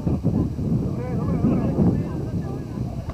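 A man calls out nearby.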